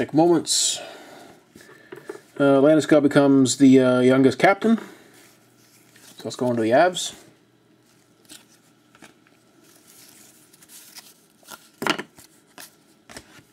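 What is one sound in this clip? Trading cards rustle and slide against each other.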